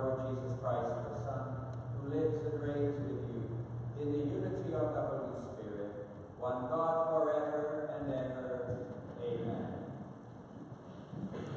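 A large crowd sings together in a big echoing hall.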